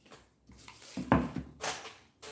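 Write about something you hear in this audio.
A wooden board is set down on a table with a soft knock.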